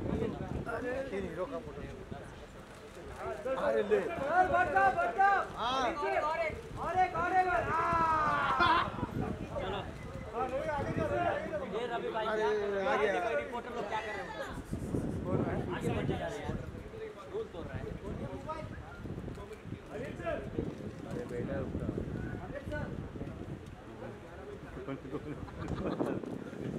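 A middle-aged man talks and laughs close by.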